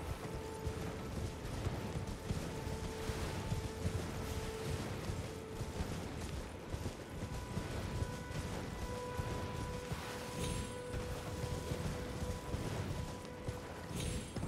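Quick footsteps run over grass and dirt.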